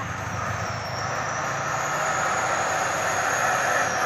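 Motorcycle engines hum as they pass.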